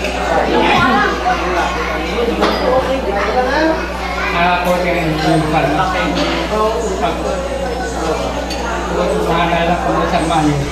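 A middle-aged man sings into a microphone through loudspeakers.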